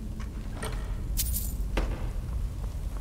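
Gold coins clink as they are picked up.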